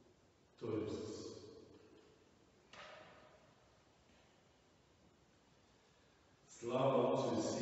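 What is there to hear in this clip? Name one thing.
An elderly man's voice rings out in bursts in a large echoing hall.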